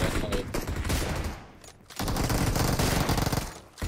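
Gunshots fire in rapid bursts.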